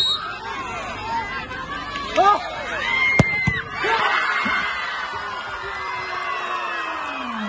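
A large crowd chatters and shouts noisily outdoors.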